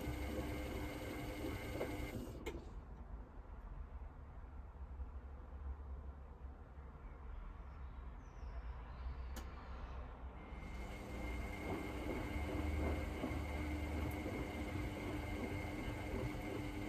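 Water and suds slosh inside a washing machine.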